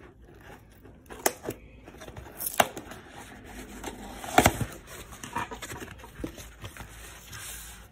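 A cardboard box flap is pulled open with a scrape.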